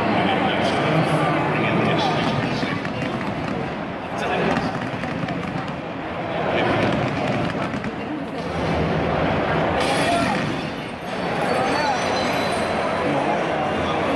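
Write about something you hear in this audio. A large stadium crowd roars and chants loudly, echoing through the open arena.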